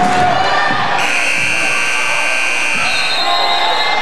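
A buzzer sounds loudly.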